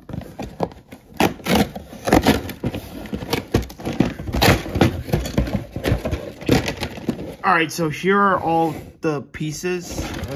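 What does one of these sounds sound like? Plastic track pieces clatter and knock against each other.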